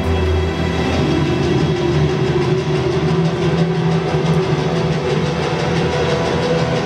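Music plays loudly through loudspeakers in a large hall.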